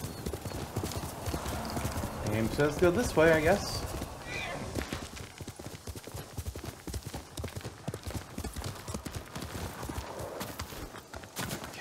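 Hooves thud steadily as a horse gallops over grass.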